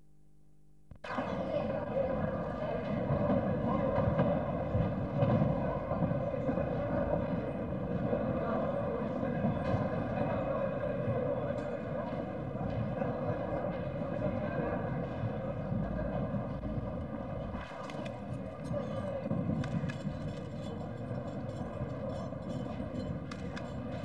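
A crowd murmurs and talks in a large echoing hall.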